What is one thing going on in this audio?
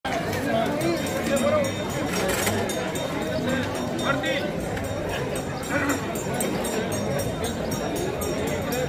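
Men talk and chatter nearby, outdoors.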